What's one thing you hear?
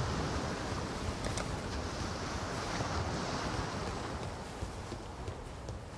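Footsteps fall on soft ground.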